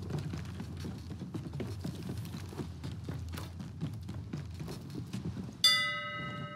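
Footsteps knock on a wooden ladder.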